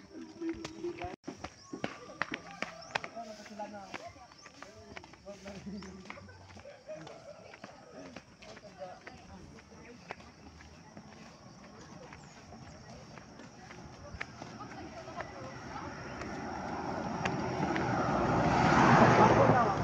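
Footsteps and sandals scuff on a paved road outdoors.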